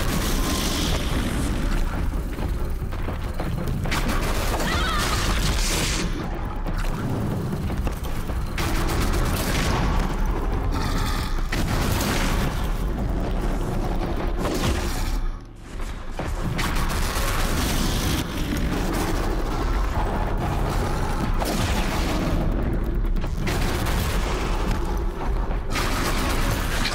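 A large machine creature stomps and growls.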